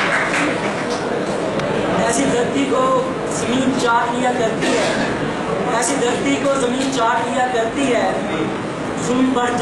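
A young man speaks calmly into a microphone over a loudspeaker.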